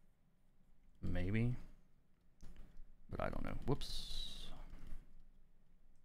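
A man speaks calmly and closely into a microphone.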